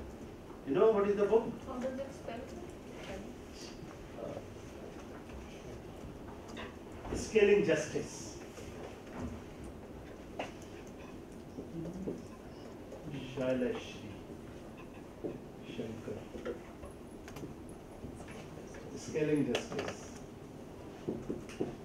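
A man speaks in a room with a slight echo, pausing often.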